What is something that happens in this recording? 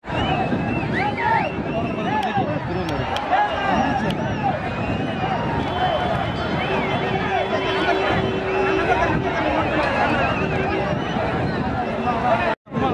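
A large crowd of men shouts and cheers outdoors.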